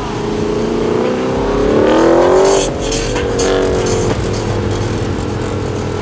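A car engine revs up with a rising roar and pulls away.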